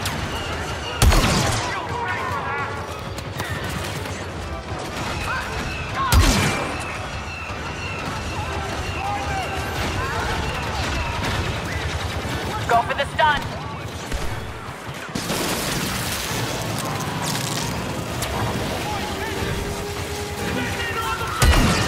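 A rifle fires loud, sharp shots that echo briefly.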